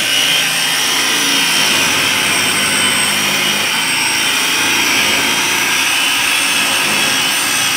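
An electric polisher whirs steadily against a car door.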